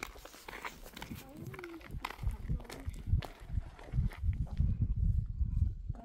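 Footsteps crunch on a gravel road.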